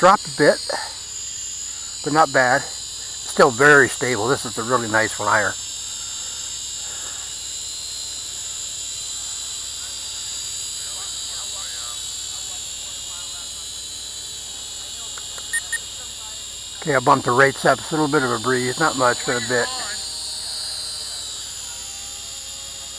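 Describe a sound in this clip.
A drone's motors buzz with a steady high whine overhead.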